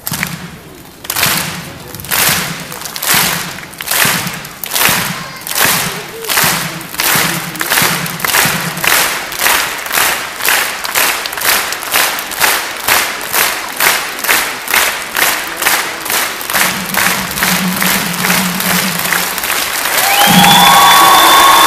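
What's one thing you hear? A crowd claps in steady rhythm.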